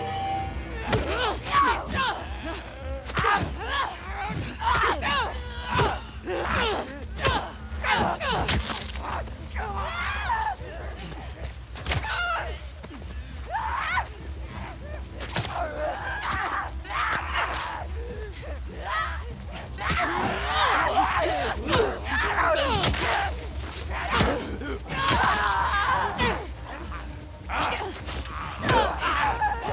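Heavy blows thud and smack against bodies.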